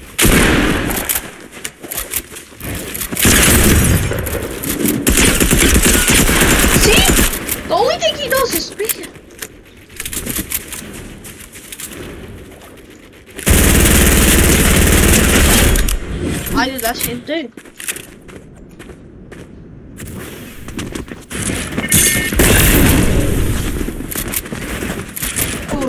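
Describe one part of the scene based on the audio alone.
A game shotgun fires.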